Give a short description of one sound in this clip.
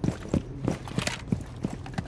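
A rifle clicks and clatters as it is reloaded.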